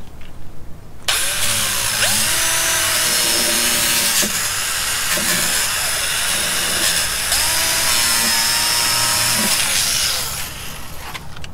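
A power tool whirs loudly and steadily up close.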